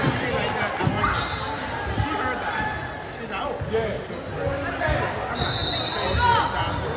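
A crowd of spectators chatters steadily in the background.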